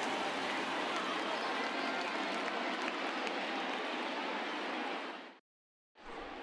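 A large crowd murmurs steadily in a big echoing stadium.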